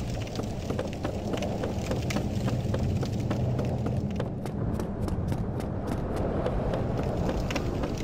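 Footsteps clatter on wooden planks.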